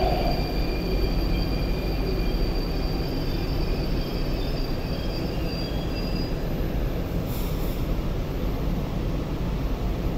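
A train rumbles along the track, slowing to a stop.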